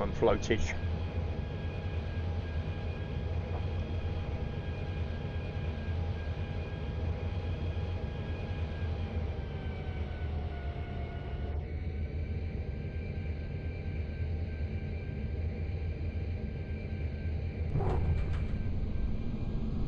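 A jet engine roars and whines steadily as an airliner rolls down a runway.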